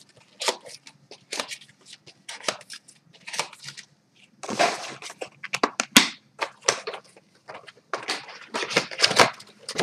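Paper crinkles and rustles as hands handle it.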